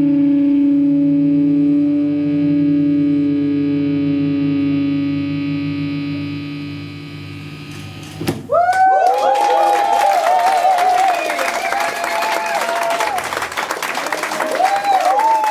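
A bass guitar plays low notes.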